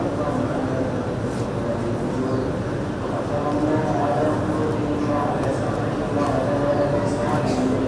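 A large group of men chant together in unison.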